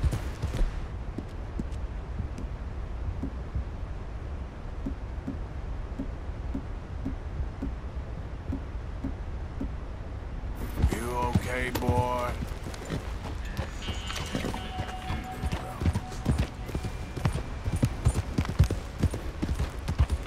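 A horse's hooves clop steadily on a dirt trail.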